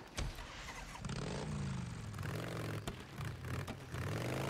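A motorcycle engine idles and revs.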